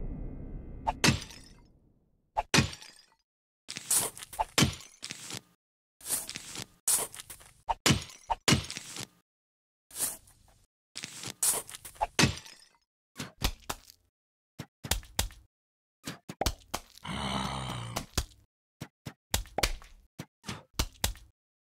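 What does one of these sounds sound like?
Clay pots shatter with sharp crashes.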